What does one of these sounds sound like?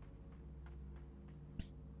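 Light footsteps patter on a hard floor.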